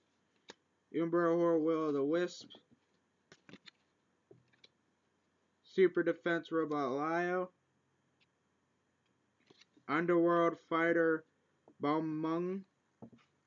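Trading cards rustle and tap as they are handled.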